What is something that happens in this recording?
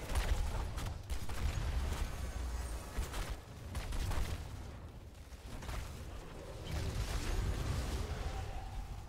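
Fighting characters trade bursts of blasts and impacts.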